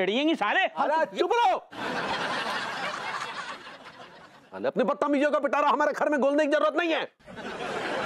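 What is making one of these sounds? A middle-aged man speaks loudly and with animation, close by.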